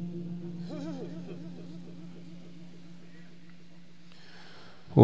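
A man chants in a long wavering voice through a loudspeaker.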